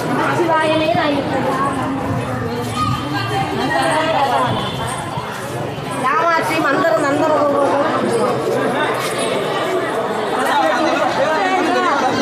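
A crowd of men and women talks all around.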